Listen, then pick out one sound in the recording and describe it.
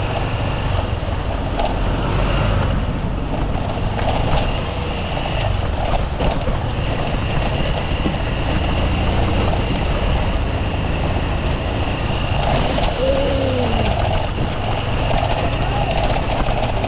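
Tyres hiss over a wet road.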